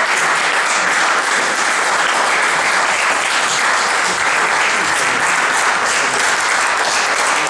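An audience applauds steadily in an echoing hall.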